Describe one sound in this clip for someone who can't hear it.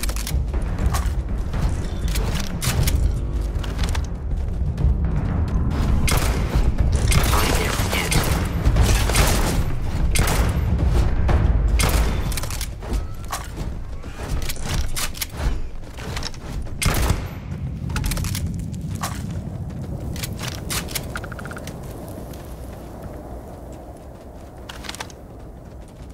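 Gunshots crack in quick bursts, echoing off rock walls.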